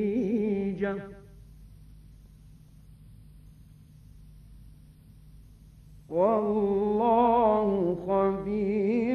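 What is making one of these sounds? An elderly man chants slowly in a long, melodic voice, heard through an old recording.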